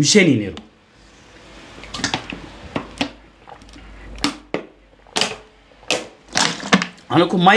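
A man gulps water from a plastic bottle.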